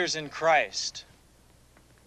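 An elderly man speaks in a gravelly voice, close by.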